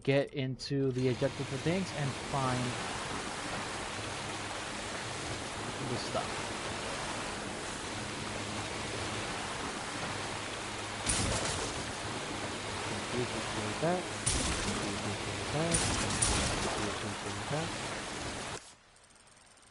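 Water splashes and churns against a boat's hull.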